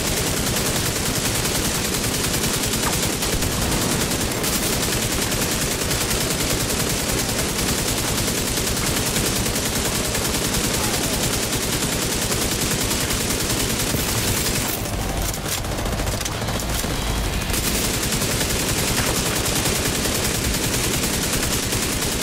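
Automatic rifles fire in rapid, steady bursts.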